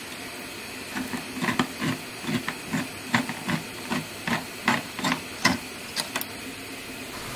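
A hand-held can opener clicks steadily as it cuts around a tin.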